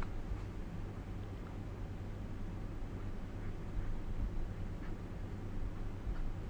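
A pen scratches softly on paper against a ruler.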